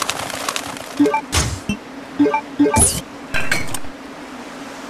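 Short electronic beeps chime as a menu is used.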